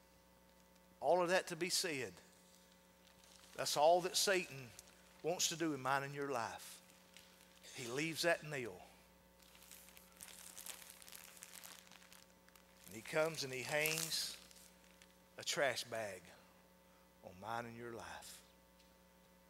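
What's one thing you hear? A man speaks calmly through a microphone in a large echoing hall, with pauses.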